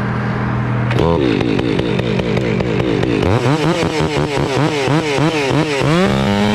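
A chainsaw revs up and down in quick bursts.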